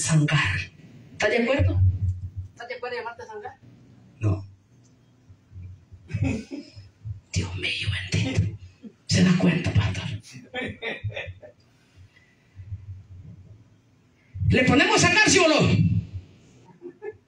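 A woman preaches loudly and with passion into a microphone, heard through loudspeakers in an echoing room.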